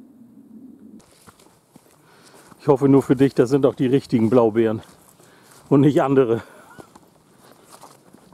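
Footsteps crunch along a forest path.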